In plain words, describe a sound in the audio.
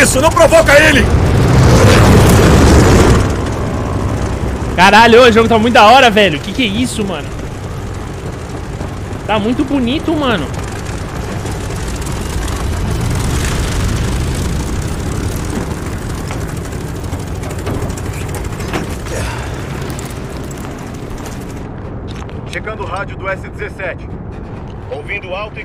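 Aircraft engines roar and rumble steadily.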